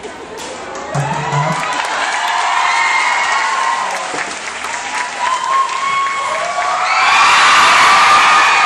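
A crowd of young women screams and cheers with excitement.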